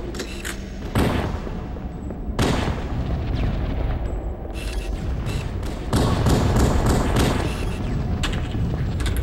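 Rifle shots crack sharply, one after another.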